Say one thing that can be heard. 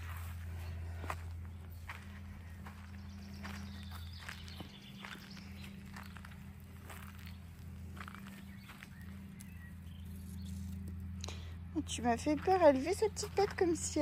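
Small puppies' paws patter softly on sand.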